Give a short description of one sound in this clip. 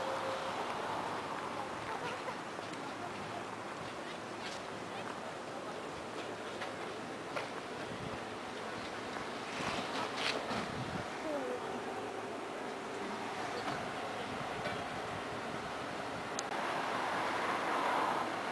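A tram rumbles steadily along its rails, with occasional clicks and clatters.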